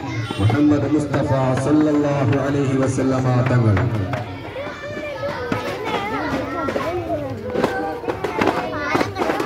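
A crowd of women and girls chatter and call out together outdoors nearby.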